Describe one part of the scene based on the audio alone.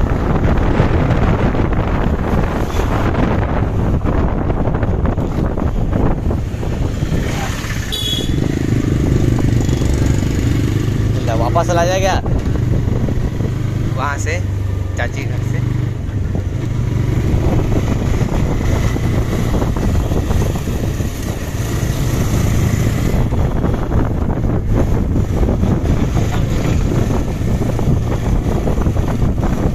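A small commuter motorcycle engine hums, cruising along a paved road.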